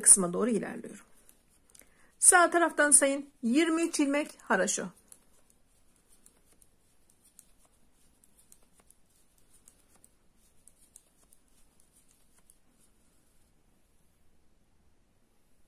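Metal knitting needles click softly.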